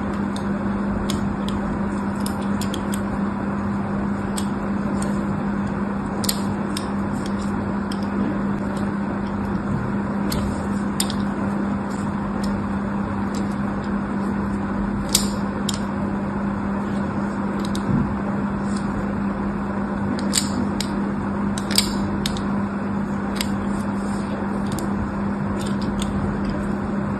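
A blade scrapes and cuts into a bar of soap with soft, crisp scratches.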